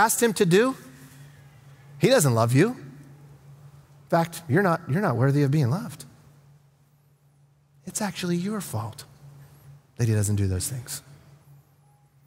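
A middle-aged man speaks calmly and with expression through a microphone, in short phrases with pauses.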